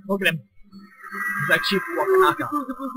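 Flames whoosh and roar.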